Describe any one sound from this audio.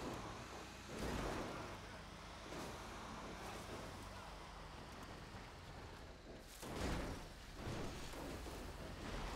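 A truck bumps and thuds over rough ground.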